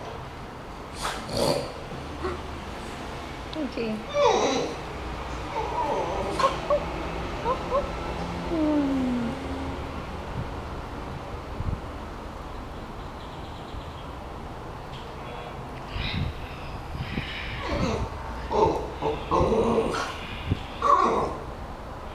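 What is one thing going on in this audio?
A dog whines excitedly nearby.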